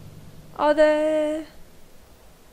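A young woman lets out a short, drawn-out vocal sound close to a microphone.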